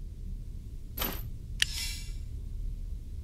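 A bright magical chime rings out once, with a short shimmering swish.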